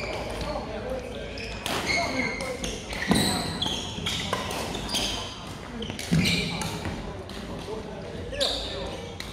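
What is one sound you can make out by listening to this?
Sounds echo through a large hall.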